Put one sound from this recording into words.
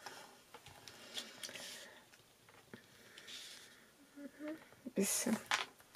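A bone folder scrapes along paper as it is scored and creased.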